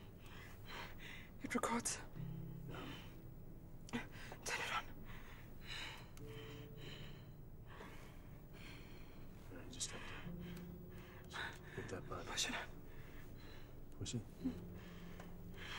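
A young woman speaks weakly and short of breath, close by.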